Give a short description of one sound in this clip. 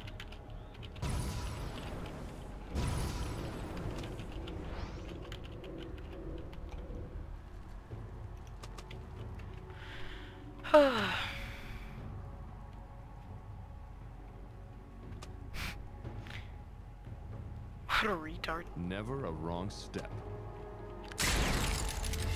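A magical teleport spell hums and whooshes.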